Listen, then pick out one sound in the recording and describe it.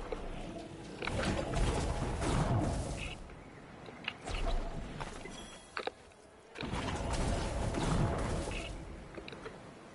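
Flames burst with a roaring whoosh, again and again.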